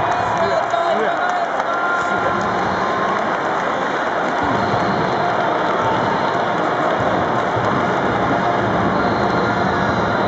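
A large stadium crowd cheers and chants loudly, heard outdoors.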